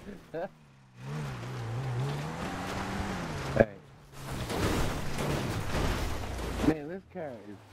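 Tyres skid and crunch over loose ground.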